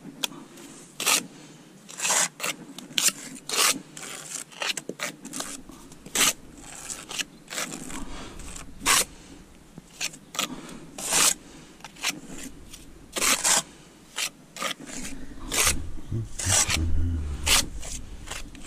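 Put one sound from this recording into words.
A trowel scrapes wet mortar.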